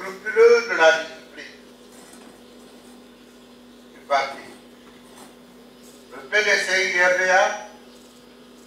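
An elderly man reads out slowly into a microphone, with long pauses.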